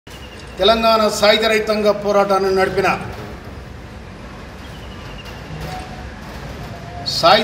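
An older man speaks forcefully into a microphone, pausing between phrases.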